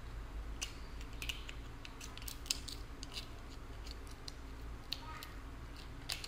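A woman chews softly and smacks her lips close to a microphone.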